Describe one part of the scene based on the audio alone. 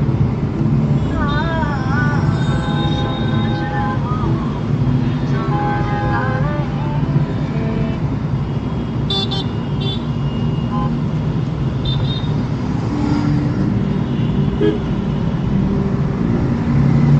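A car engine hums and tyres rumble on the road from inside the car.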